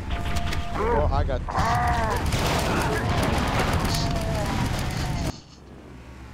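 An energy weapon fires in rapid bursts.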